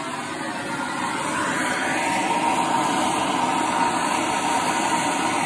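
A blowtorch roars with a steady hissing rush.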